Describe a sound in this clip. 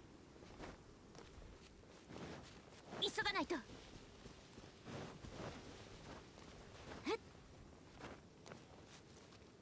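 Footsteps patter over grass and rock.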